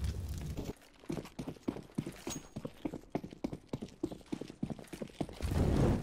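Footsteps thud quickly on stone.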